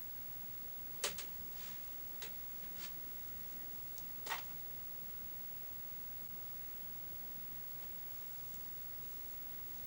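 A woman's hands rustle and brush through her long hair close by.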